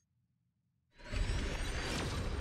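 A bright magical whoosh swells loudly.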